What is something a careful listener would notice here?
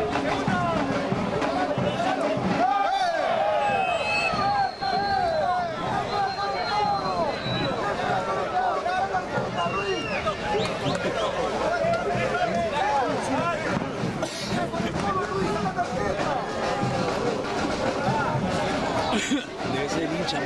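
A crowd of spectators chants and shouts nearby, outdoors.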